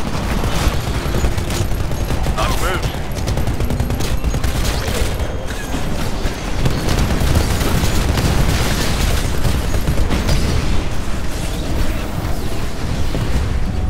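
Heavy gunfire from a large machine gun rattles rapidly.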